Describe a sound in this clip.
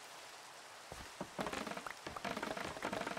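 Blocks of wood are chopped with quick knocks.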